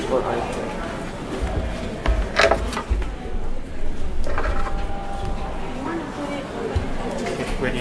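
Cables and equipment rattle and knock as they are handled.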